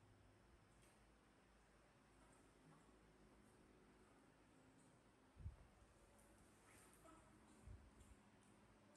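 A small monkey pads across a tiled floor.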